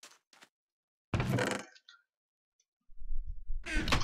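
A wooden chest creaks open and shut.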